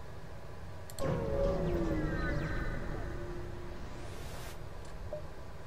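A spaceship warps in with a sweeping electronic whoosh.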